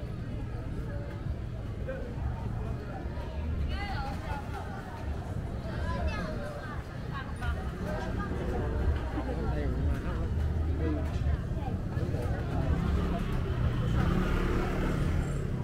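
A crowd chatters all around outdoors, with many voices of men and women talking at once.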